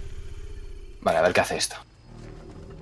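A short game sound effect sounds for a missed attempt.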